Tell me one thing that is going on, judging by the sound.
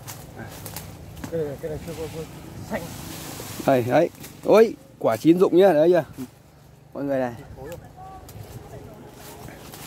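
Leaves and branches rustle as a man climbs through a tree.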